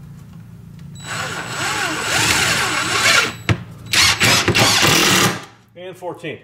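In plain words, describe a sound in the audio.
A power drill whirs in short, loud bursts.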